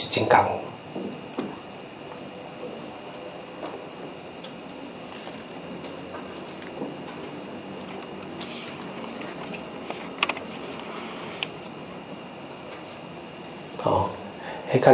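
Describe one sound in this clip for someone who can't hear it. A middle-aged man speaks calmly into a microphone, as in a lecture.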